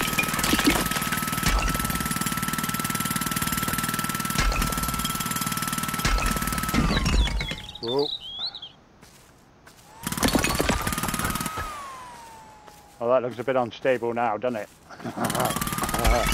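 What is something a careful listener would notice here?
A jackhammer pounds and rattles in loud bursts.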